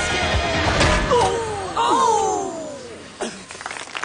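A man exclaims loudly.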